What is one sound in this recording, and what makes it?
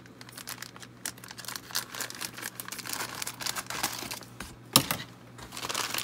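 Scissors snip through plastic.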